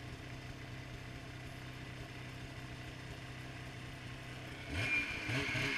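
A snowmobile engine idles with a low hum.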